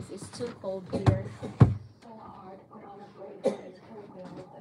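Plastic knocks and clatters on a table.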